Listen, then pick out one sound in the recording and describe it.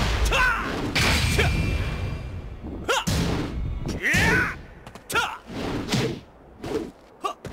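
Fighters shout sharply as they strike.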